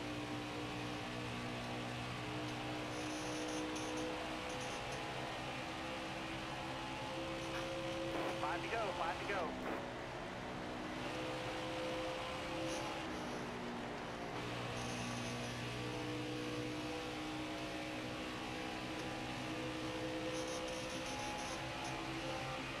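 A V8 stock car engine roars at full throttle.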